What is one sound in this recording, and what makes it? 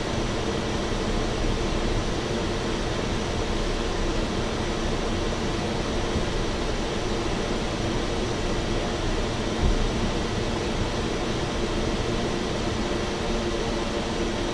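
Tyres rumble on a runway.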